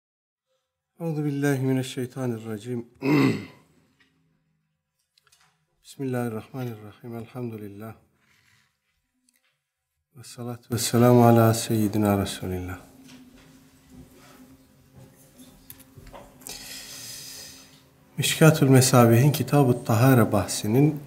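A middle-aged man speaks calmly and steadily into a nearby microphone, pausing now and then.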